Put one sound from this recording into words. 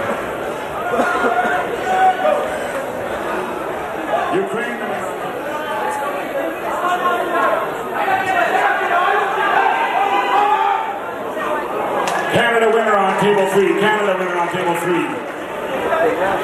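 A crowd of spectators shouts and cheers loudly nearby.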